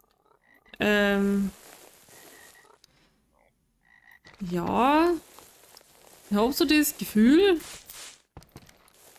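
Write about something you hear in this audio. A young woman speaks into a close microphone.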